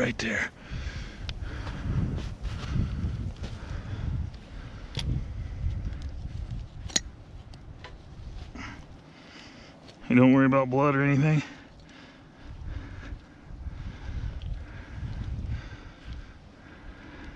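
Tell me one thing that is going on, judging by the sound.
Hands scrape and press loose dirt and twigs close by.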